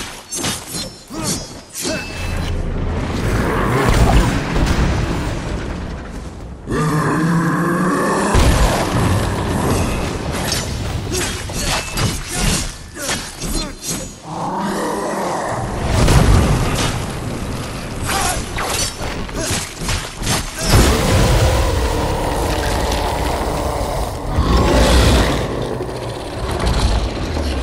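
Sword slashes clang and whoosh in quick bursts.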